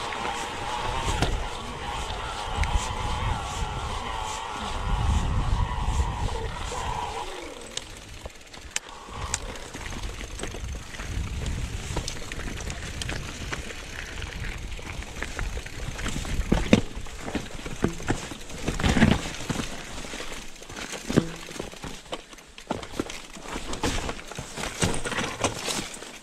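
Bike tyres crunch and roll over a rough, stony trail.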